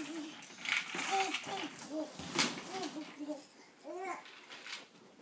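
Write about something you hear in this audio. A toddler babbles and squeals happily close by.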